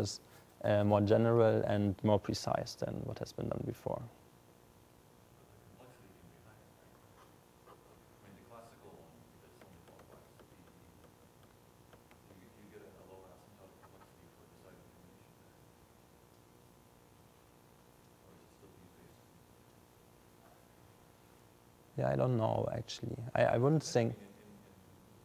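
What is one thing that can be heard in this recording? A young man speaks through a microphone into a large room, pausing between phrases.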